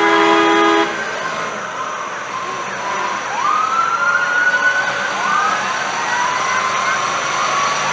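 A heavy military truck's engine rumbles as it drives slowly past.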